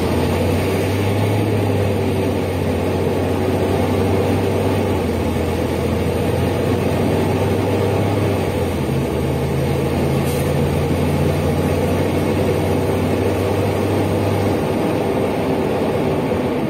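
A city bus's inline six-cylinder diesel engine hums, heard from inside the bus.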